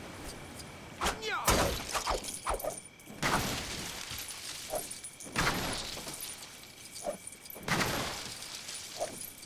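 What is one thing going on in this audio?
Plastic bricks clatter and smash apart.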